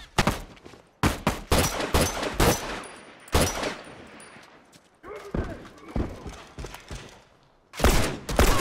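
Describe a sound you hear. Gunshots fire in sharp, loud bursts.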